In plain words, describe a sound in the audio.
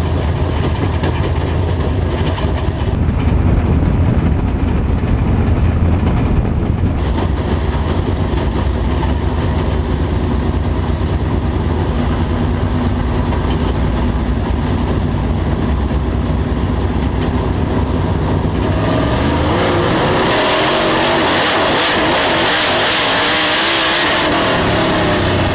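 A race car engine roars loudly up close, rising and falling as it speeds around the track.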